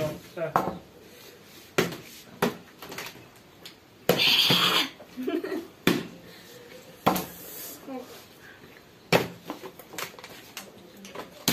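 Plastic water bottles thud and clatter on a table.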